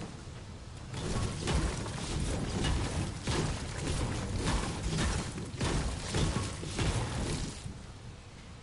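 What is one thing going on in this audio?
A pickaxe strikes stone and wood again and again.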